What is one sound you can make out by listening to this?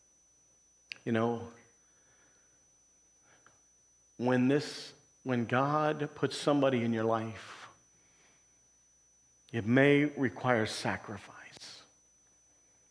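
A man speaks calmly in short bursts with pauses, in a room with some echo.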